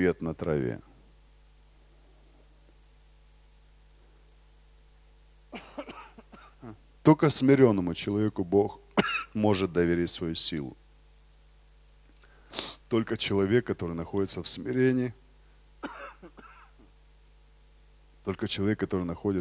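A man speaks with emphasis into a microphone, heard through loudspeakers in a large hall, with pauses between phrases.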